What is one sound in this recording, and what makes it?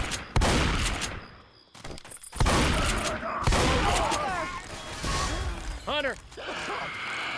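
A zombie growls and screeches.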